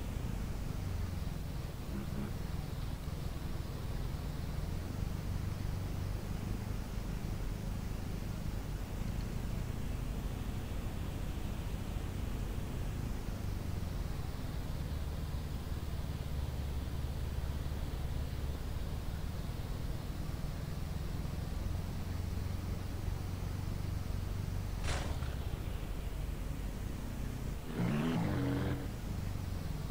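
A tractor engine rumbles steadily at low revs.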